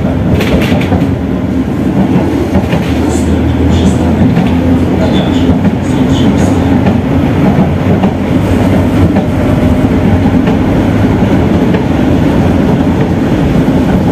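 Tram wheels rattle and squeal on the rails.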